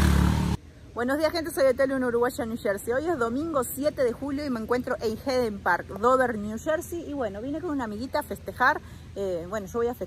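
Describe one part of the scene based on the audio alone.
A middle-aged woman talks with animation close to the microphone.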